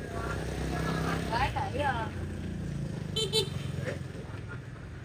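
A motorbike engine rumbles past close by.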